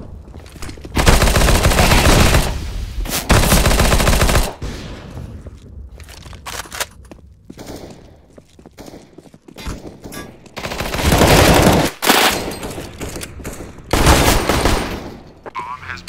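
Rifle shots fire in rapid, loud bursts.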